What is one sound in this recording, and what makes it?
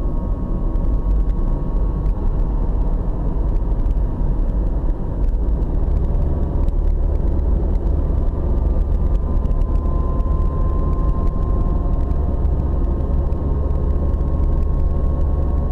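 A car engine hums steadily from inside the car as the car drives along.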